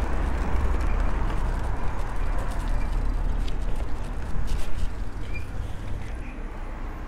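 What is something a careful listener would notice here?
Bicycle tyres roll over paving.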